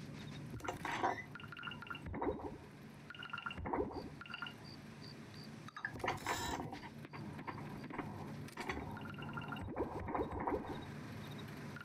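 Menu chimes blip in short repeated tones.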